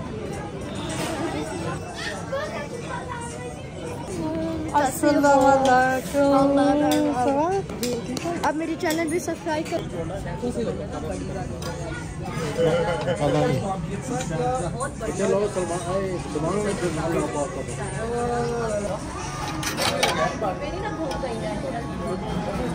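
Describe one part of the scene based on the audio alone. A crowd chatters all around in a busy room.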